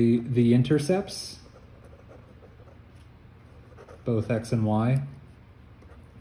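A marker scratches and squeaks on paper.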